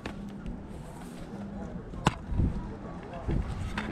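A plastic game case snaps open.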